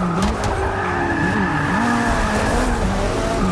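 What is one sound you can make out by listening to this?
Tyres screech on the road.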